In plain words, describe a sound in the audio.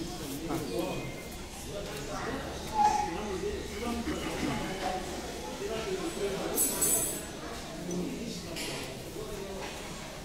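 A man chews food with his mouth full.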